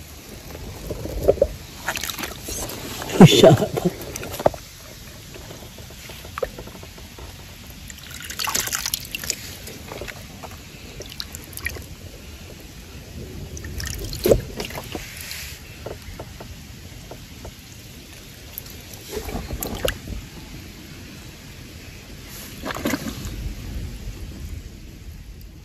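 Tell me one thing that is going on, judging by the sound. Hands splash and scoop in shallow water.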